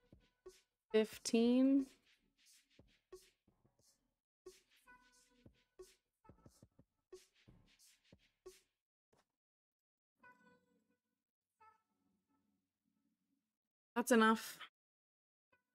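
A young woman speaks briefly and with animation, close to a microphone.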